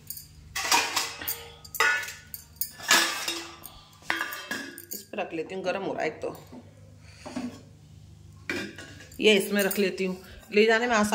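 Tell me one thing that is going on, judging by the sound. Glass bangles jingle and clink on a wrist.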